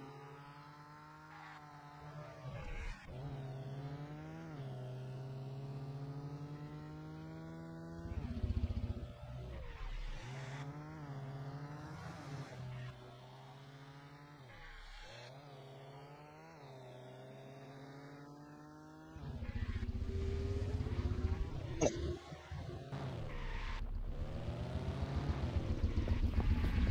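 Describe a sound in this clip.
A car engine revs up and down as it speeds along and shifts gears.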